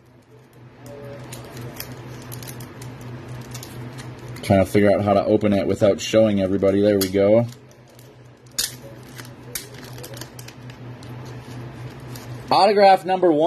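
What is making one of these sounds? Hard plastic card cases click and tap against each other.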